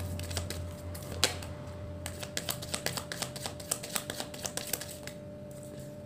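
Playing cards riffle and flick as a deck is shuffled.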